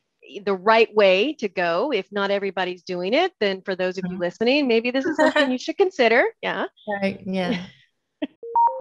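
A woman talks warmly over an online call.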